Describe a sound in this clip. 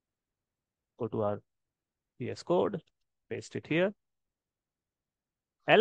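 A man speaks calmly and closely into a microphone, in short phrases.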